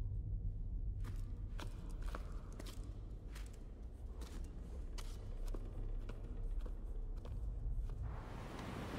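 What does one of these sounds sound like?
Footsteps crunch over rough stone at a steady walking pace.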